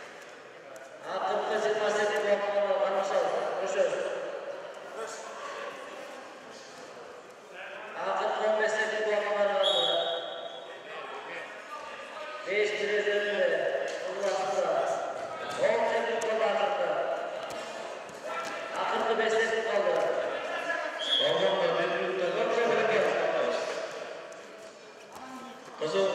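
A man speaks loudly and with animation in an echoing hall.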